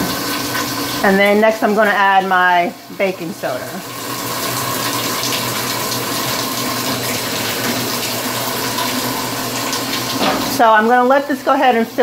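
A woman speaks calmly and close by, explaining.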